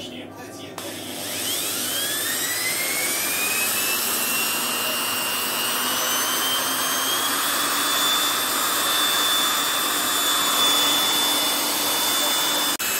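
An electric drill whines, speeding up and then running steadily.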